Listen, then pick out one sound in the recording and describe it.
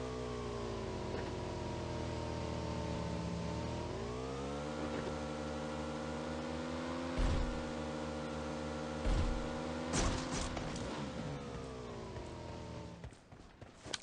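A motorcycle engine hums steadily and revs up.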